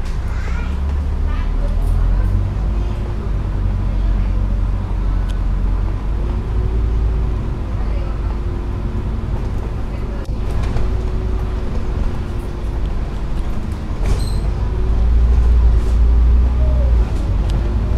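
A diesel double-decker bus pulls away and accelerates, its engine rising in pitch.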